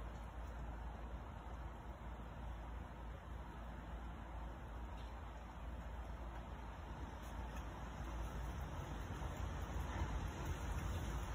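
Curtains flap and rustle in the wind.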